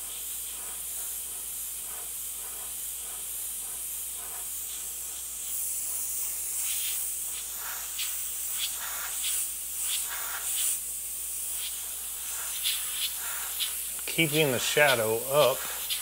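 An airbrush hisses steadily.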